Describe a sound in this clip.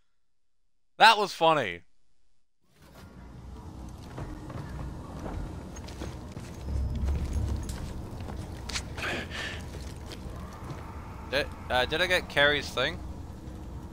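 A young man speaks excitedly into a headset microphone.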